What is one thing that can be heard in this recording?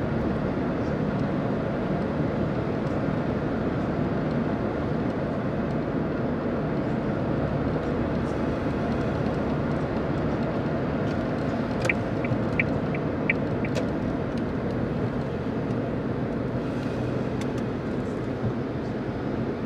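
Tyres roar steadily on the road at speed.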